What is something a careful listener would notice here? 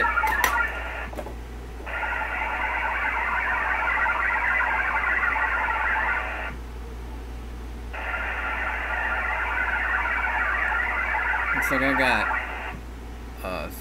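A digital radio signal warbles in steady bursts through a receiver speaker.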